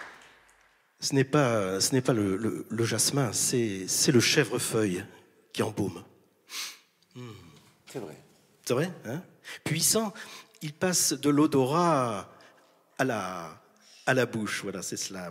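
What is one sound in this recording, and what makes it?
A middle-aged man recites poetry through a handheld microphone.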